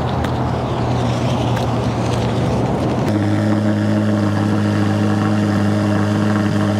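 A flat-plane-crank V8 sports car engine idles.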